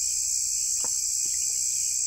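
A young boy slurps soup from a bowl.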